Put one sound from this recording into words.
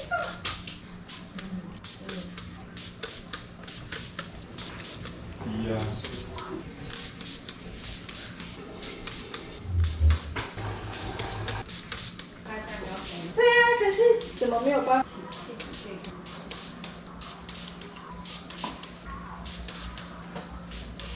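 Paper crinkles and rustles in someone's hands.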